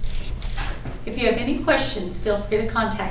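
A woman talks close by in an upbeat voice.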